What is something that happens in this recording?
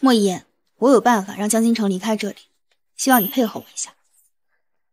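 A young woman speaks calmly and firmly, close by.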